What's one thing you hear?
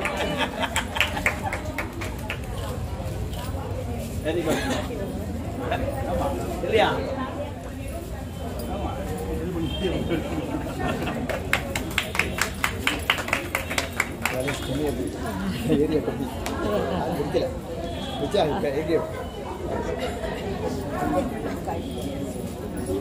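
Several women talk and laugh together.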